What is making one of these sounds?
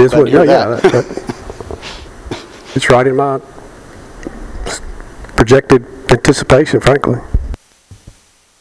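A middle-aged man speaks into a microphone, amplified in a large echoing hall.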